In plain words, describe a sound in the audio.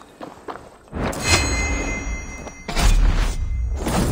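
A blade strikes with a heavy thud.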